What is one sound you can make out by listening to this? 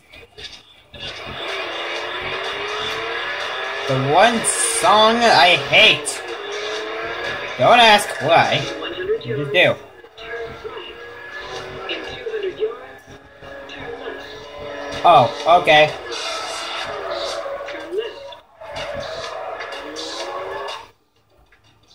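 A racing car engine roars and revs through a television speaker.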